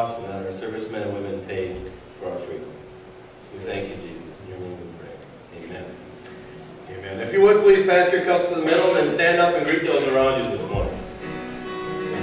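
A man speaks with animation through loudspeakers in a large echoing hall.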